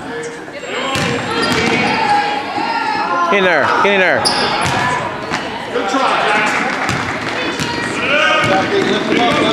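Voices cheer and shout, echoing through a large gym.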